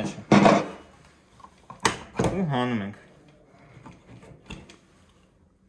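Metal parts of a rifle click and clack as they are handled.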